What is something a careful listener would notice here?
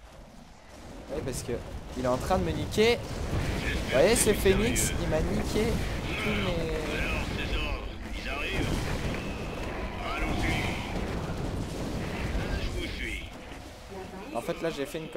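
Sci-fi weapons fire rapidly and blasts crackle in a battle.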